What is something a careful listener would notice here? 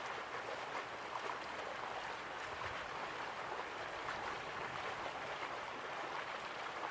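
Waterfalls rush steadily in the distance.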